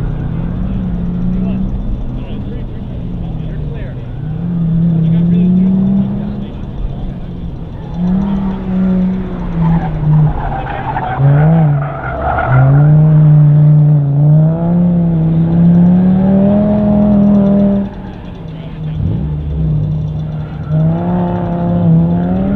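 A car engine revs hard and rises and falls in pitch as a car speeds through a course.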